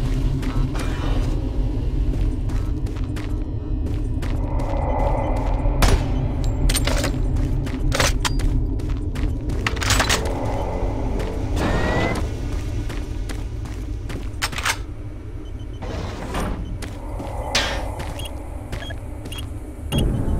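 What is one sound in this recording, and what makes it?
Footsteps thud on a metal floor.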